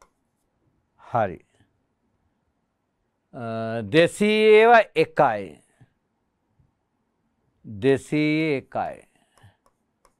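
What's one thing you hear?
A middle-aged man speaks clearly into a microphone, explaining slowly.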